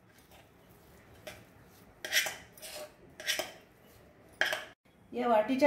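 A metal spoon scrapes and knocks against a steel pot.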